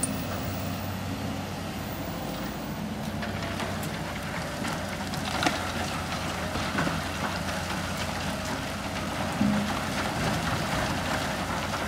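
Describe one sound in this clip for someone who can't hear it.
Excavator engines rumble steadily.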